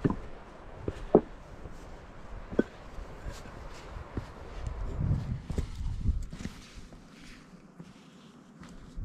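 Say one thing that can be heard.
Boots crunch on rocky ground.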